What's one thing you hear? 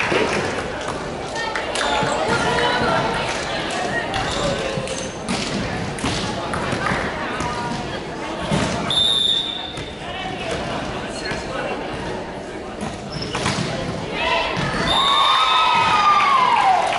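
A crowd of girls chatters and calls out in a large echoing hall.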